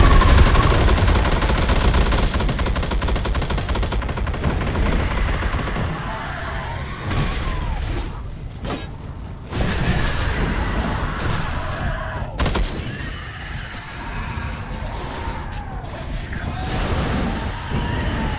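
Heavy guns fire in rapid, loud bursts.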